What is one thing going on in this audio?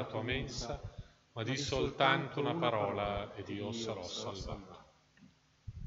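A man speaks through a microphone in a large echoing room.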